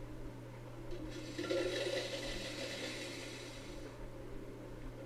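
Coins clatter and jingle as they pour down into a tray.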